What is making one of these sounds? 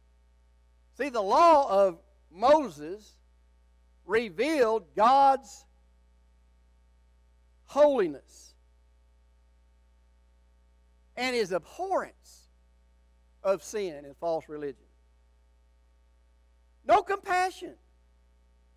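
An elderly man speaks slowly and with feeling through a microphone, pausing between phrases.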